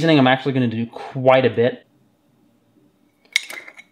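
A metal lid twists off a glass jar.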